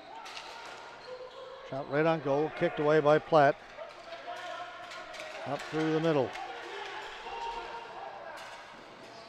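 Hockey sticks clack against a ball on a hard floor.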